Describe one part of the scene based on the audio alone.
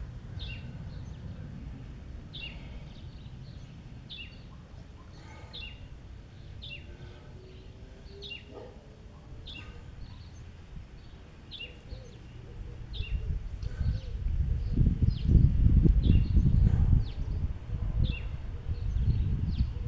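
Water laps gently in a swimming pool.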